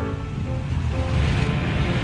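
A motorcycle engine rumbles as it rides past.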